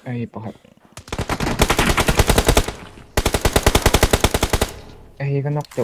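Automatic gunfire rattles rapidly in two loud bursts.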